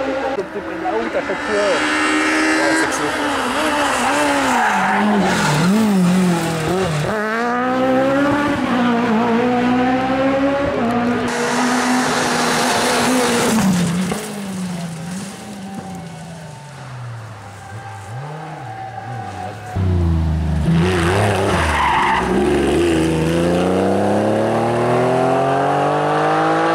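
A rally car engine roars at high revs, shifting gears as it speeds past.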